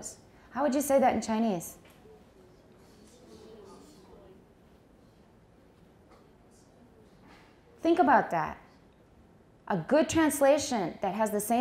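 A woman speaks calmly into a microphone, in short bursts with pauses.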